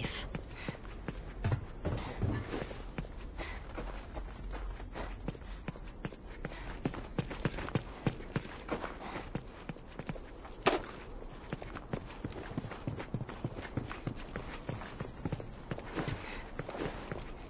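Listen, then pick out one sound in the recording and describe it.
Footsteps crunch on a gritty floor at a brisk walk.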